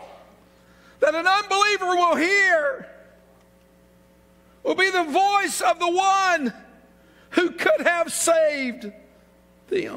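A middle-aged man shouts loudly through a microphone.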